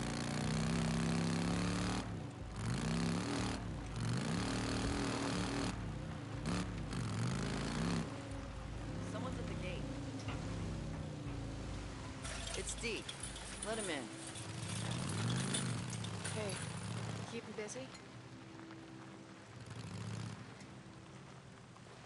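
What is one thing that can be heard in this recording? A motorcycle engine rumbles and revs up and down.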